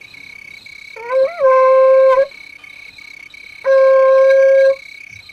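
A conch shell is blown in two long, loud blasts.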